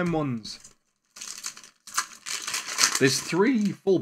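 Plastic wrapping crinkles as a card pack is torn open.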